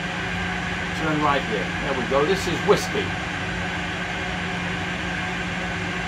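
A steady jet engine hum drones throughout.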